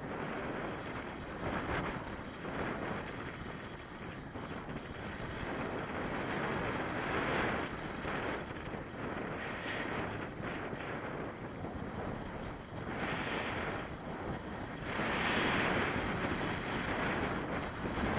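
Strong wind rushes and buffets loudly past a microphone high in the air.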